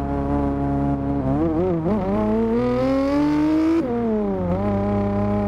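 A race car engine roars, rising and falling in pitch as it shifts gears.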